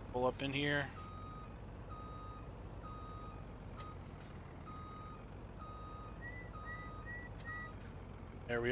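A truck's reversing alarm beeps at a steady pace.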